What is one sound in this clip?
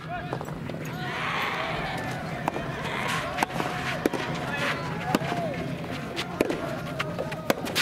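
A tennis ball is struck sharply by a racket.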